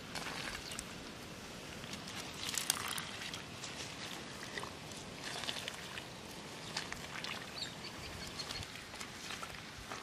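Hands dig and squelch in wet mud.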